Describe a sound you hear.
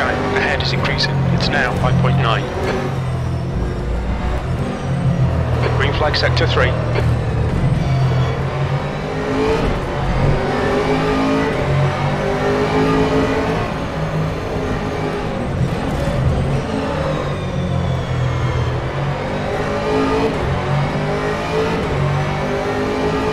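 A racing car engine roars loudly, its pitch rising and falling as it shifts gears.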